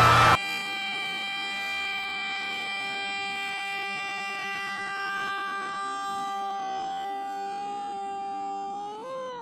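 A high cartoonish voice holds one long, distorted, wavering note.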